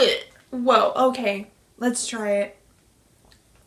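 A young woman makes loud, drawn-out sounds up close, as if savouring food.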